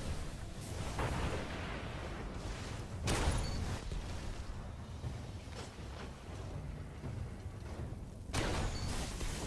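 A handgun fires loud, sharp shots.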